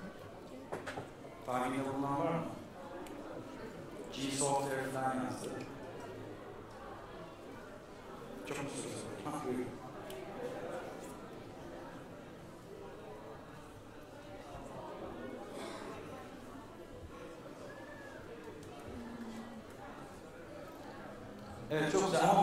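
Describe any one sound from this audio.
A middle-aged man speaks calmly through a microphone and loudspeakers in a large echoing hall.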